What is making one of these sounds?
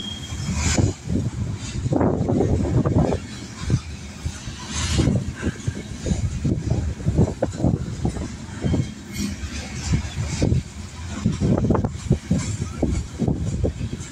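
Steel train wheels clank and thump over rail joints.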